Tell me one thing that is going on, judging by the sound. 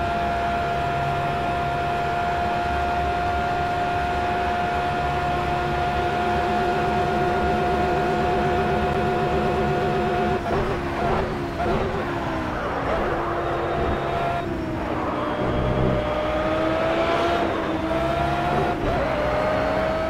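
A racing car engine roars steadily at high revs.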